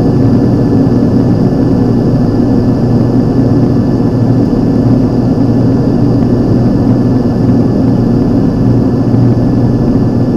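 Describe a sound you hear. Wind rushes past the aircraft.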